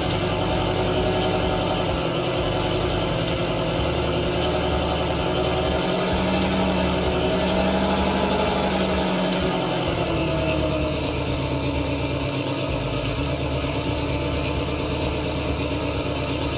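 Tank tracks clank and squeak as the tank moves.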